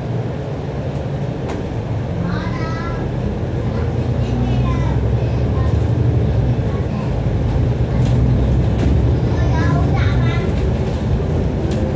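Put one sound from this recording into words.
A double-decker diesel bus engine drones and rises as the bus drives along, heard from inside.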